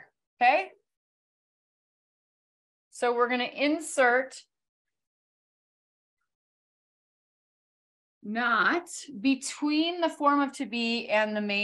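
A woman speaks clearly and calmly, heard through a microphone.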